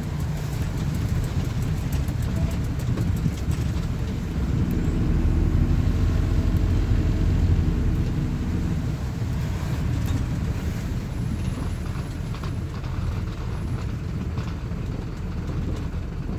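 A bus engine hums and rumbles steadily from inside the bus.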